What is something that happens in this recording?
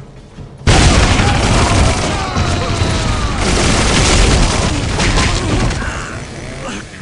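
Gunfire and explosions rattle in a loud battle.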